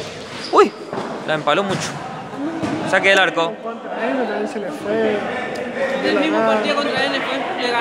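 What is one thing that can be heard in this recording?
A ball thuds off a player's foot.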